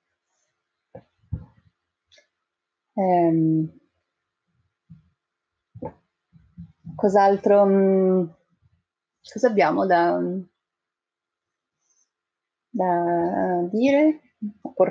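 A second middle-aged woman speaks over an online call, pausing and then talking with animation.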